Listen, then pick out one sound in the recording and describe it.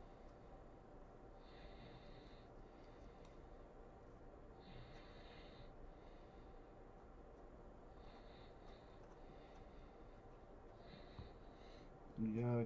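Trading cards slide and shuffle in a man's hands.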